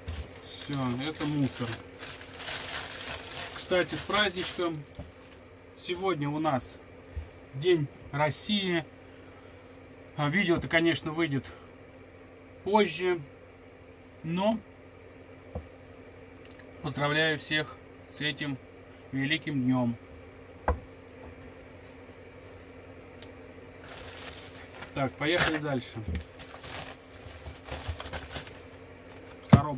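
A plastic bag crinkles and rustles in a man's hands.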